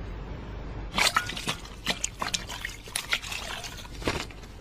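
Hands splash and rub in a bowl of water.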